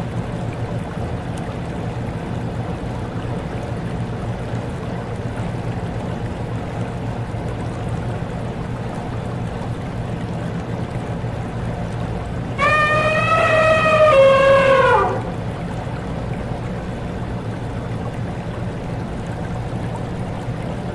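A stream splashes against a turning water wheel.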